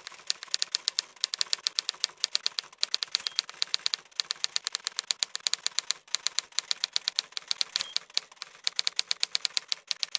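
Typewriter keys clack in quick bursts.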